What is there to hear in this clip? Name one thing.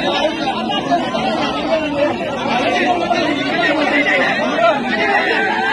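A crowd of men talk and shout over one another close by.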